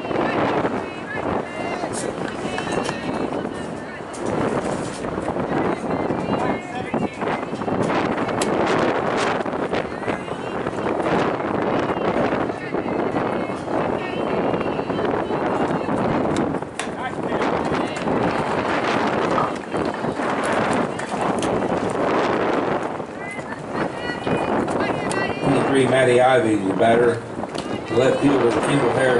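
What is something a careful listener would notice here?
Several people chatter and call out outdoors throughout.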